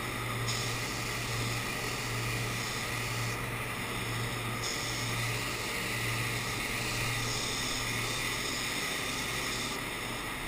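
A spray gun hisses in bursts as paint sprays out.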